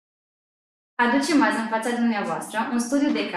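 A young woman reads out calmly through a microphone.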